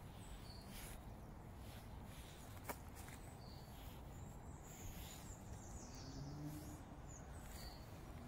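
Footsteps crunch softly through dry fallen leaves.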